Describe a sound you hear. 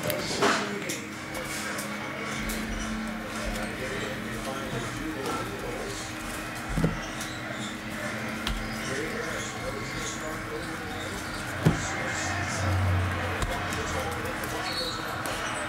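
Trading cards shuffle and slide against each other in hand.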